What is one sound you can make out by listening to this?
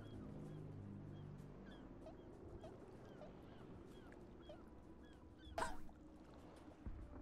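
Calm water laps gently against a rocky shore.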